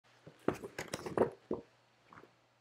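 Paper rustles briefly.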